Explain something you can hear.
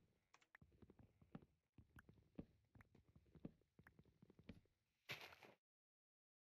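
An axe chops wood with repeated dull knocks.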